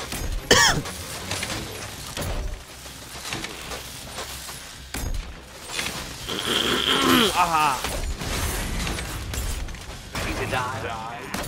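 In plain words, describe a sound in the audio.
Punches and heavy blows land in a fast fight.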